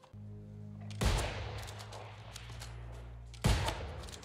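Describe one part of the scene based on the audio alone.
A musket fires with a loud bang.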